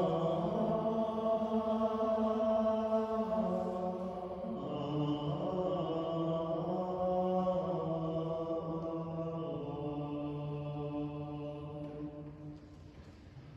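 A man sings a slow chant through a microphone in an echoing hall.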